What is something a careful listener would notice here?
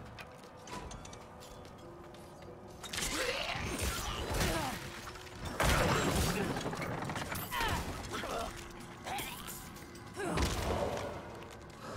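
Spells burst with a whooshing roar.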